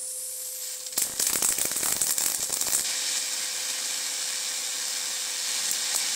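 An electric arc crackles and buzzes loudly.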